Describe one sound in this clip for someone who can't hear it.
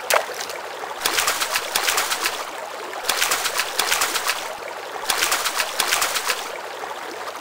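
Water splashes as a hooked fish thrashes.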